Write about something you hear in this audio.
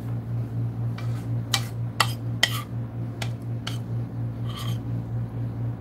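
Dishes and utensils clink on a table.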